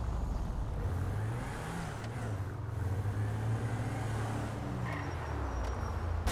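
A car engine hums and revs as a car drives along a road.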